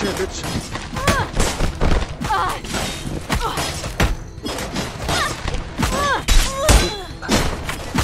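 A young woman shouts and cries out in effort.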